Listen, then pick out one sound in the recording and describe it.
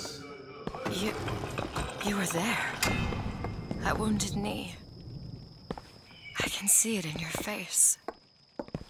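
A young woman speaks with feeling, close by.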